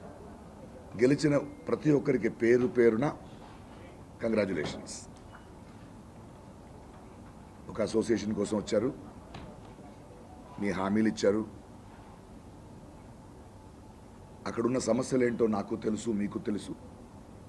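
A middle-aged man speaks calmly into microphones, in short bursts with pauses.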